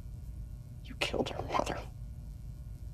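A young man speaks quietly and tensely.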